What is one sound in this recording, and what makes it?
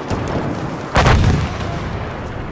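A loud explosion booms nearby.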